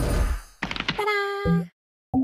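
A short chiming jingle plays.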